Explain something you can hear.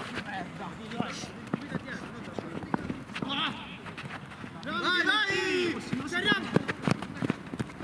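A football is kicked with sharp thuds.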